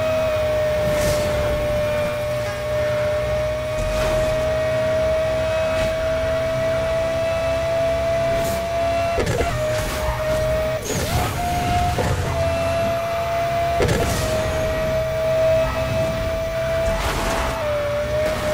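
Boost bursts whoosh loudly now and then.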